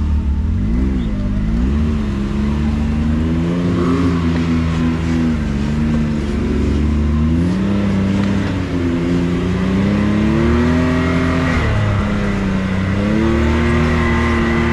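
An off-road buggy engine revs and drones, rising and falling in pitch.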